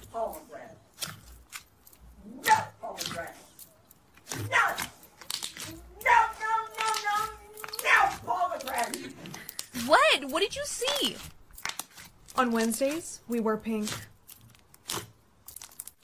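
Soft slime squishes and squelches under hands.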